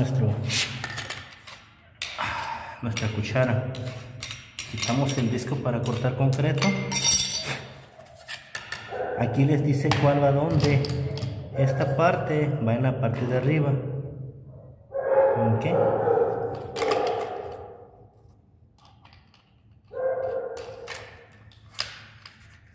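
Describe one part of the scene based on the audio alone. A cutting disc clicks as it is fitted onto an angle grinder.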